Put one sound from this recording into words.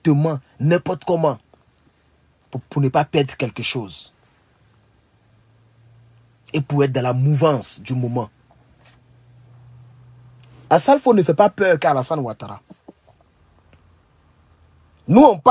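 A young man speaks with animation into a nearby phone microphone, in bursts with pauses.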